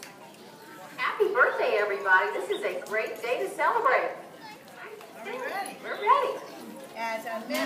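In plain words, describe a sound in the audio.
A crowd of children chatters and calls out outdoors.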